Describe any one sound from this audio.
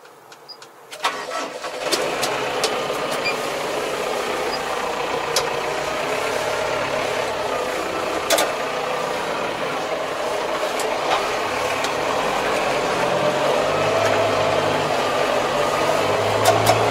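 A tractor engine rumbles steadily from inside a cab.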